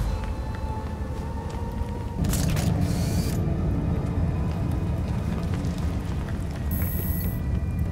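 Footsteps crunch quickly on loose gravel.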